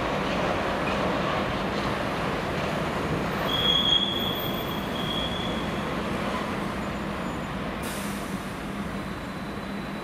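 A freight train rumbles past on the rails.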